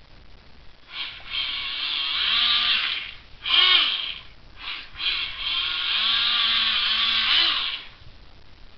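Water swishes and splashes as a toy boat is pushed through it.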